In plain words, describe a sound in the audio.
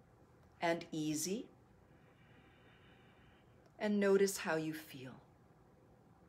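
A woman speaks calmly and softly close by.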